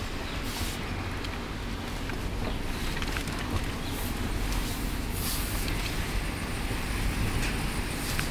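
Tyres crunch over gravel beneath a car.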